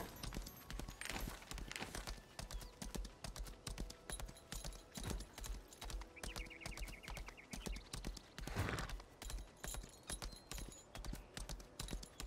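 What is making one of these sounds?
Quick footsteps patter on the ground.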